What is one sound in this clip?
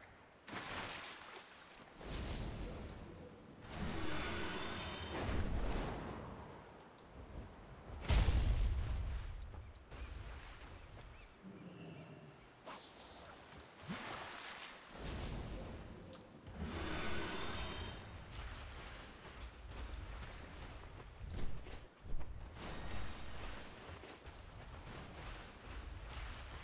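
Large wings flap in repeated whooshing gusts.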